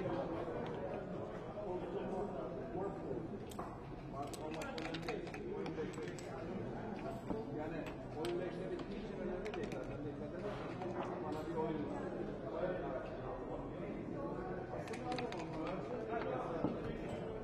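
Dice rattle in a cup and clatter onto a wooden board.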